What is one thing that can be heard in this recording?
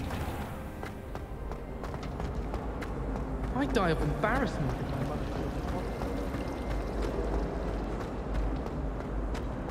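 Footsteps patter quickly on a stone floor in a large echoing hall.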